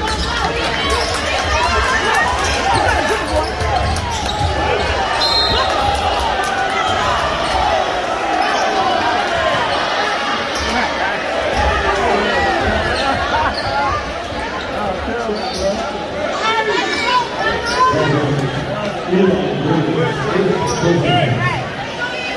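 A crowd in a large echoing gym chatters and calls out.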